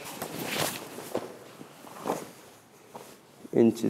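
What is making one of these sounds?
Cloth swishes sharply.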